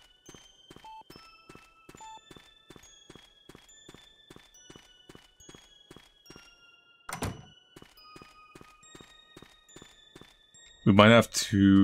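Footsteps tap at a quick, steady pace.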